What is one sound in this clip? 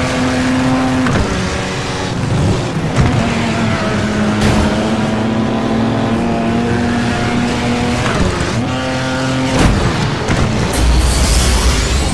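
A car engine roars at high revs, its pitch rising and dropping with gear changes.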